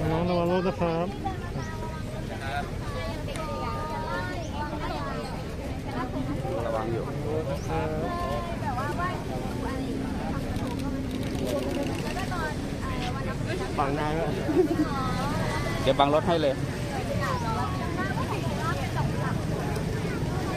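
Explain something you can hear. Young women chat and talk with animation close by.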